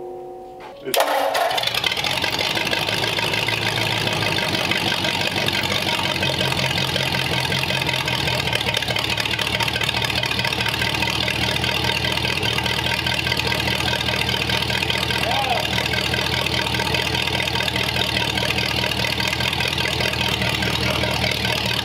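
An engine starts and runs with a steady loud rumble.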